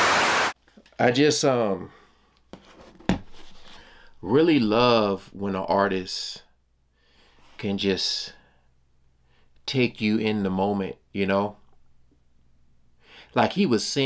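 A man speaks calmly and close up, with pauses.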